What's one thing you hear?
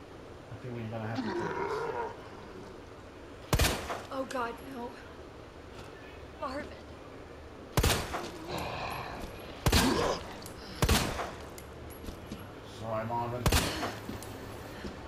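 A man groans and moans hoarsely.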